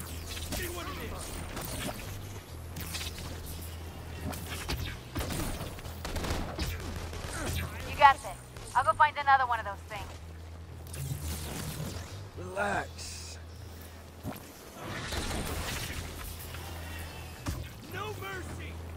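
Energy blasts crackle and burst again and again.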